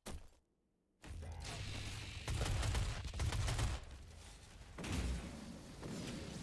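Deep booms and explosions rumble.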